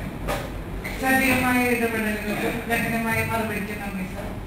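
A woman speaks into a microphone, heard through loudspeakers in an echoing hall.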